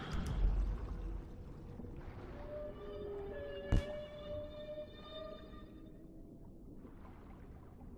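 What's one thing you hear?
Water bubbles and gurgles underwater.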